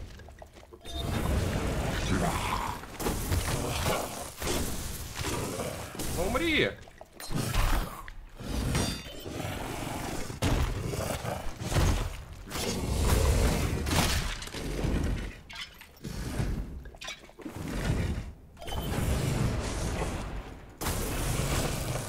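Heavy weapon blows thud and clang in a fight.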